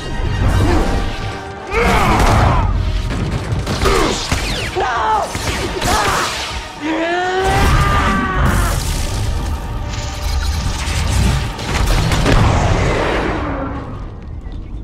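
Loud crashes and blasts ring out in a fight.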